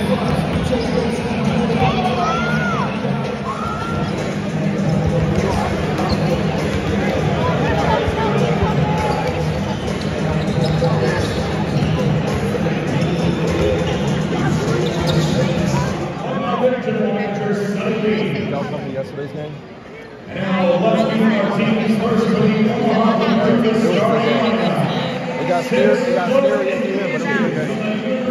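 Basketballs bounce on a hard court in a large echoing hall.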